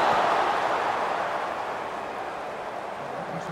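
A stadium crowd cheers loudly, then the roar fades.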